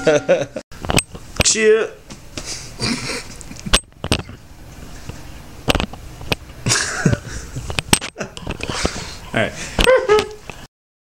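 A young man beatboxes into a microphone close by, with sharp clicks and pitched hums.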